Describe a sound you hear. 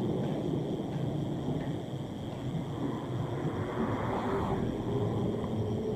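A car drives past on a quiet street.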